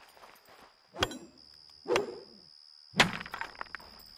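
A blade swishes as it cuts through tall grass.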